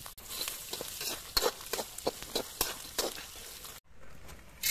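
A metal skimmer scrapes and clinks against a wok full of frying peanuts.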